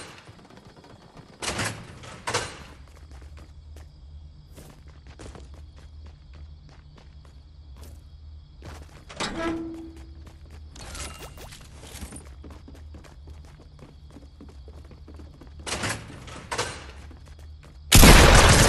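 Footsteps patter across hard floors.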